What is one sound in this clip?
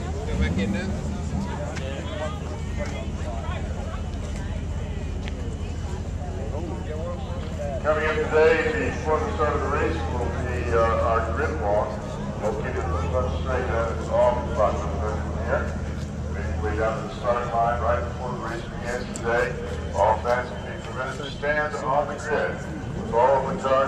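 A man talks calmly nearby over the engine.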